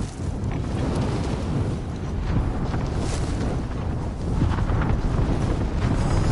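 Wind roars and buffets steadily during a fast parachute descent.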